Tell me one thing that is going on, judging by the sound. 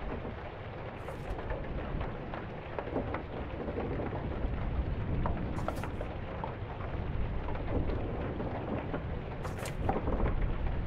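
A page of a book flips over with a short papery rustle.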